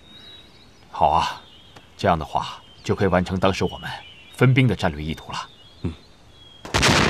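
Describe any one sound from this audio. A younger man answers in a measured voice.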